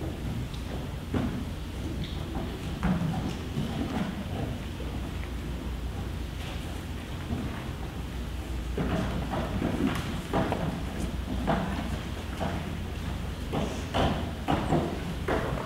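Children chatter and murmur in a large echoing hall.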